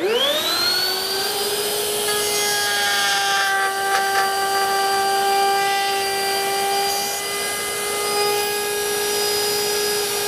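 A table saw motor spins up and hums with a steady high whine.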